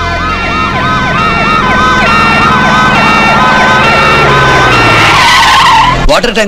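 Vehicle engines rumble as ambulances drive in.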